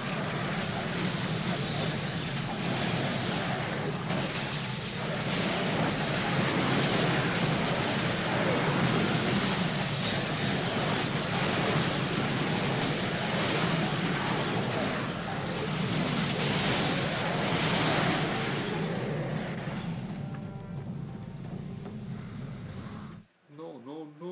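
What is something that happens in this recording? Spells crackle and roar loudly in a hectic battle.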